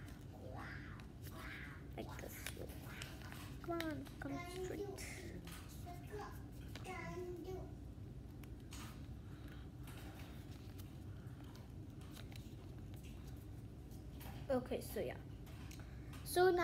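Paper rustles and creases as it is folded.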